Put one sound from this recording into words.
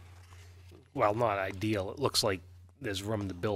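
Another man speaks calmly into a microphone.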